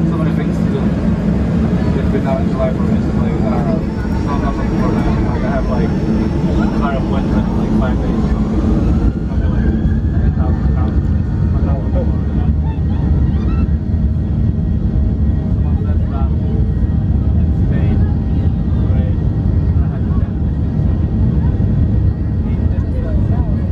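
Aircraft wheels rumble and thump over a runway.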